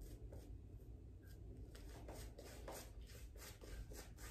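A razor scrapes softly through shaving foam on a cheek.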